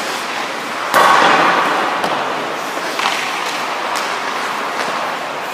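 A hockey puck clacks off a stick.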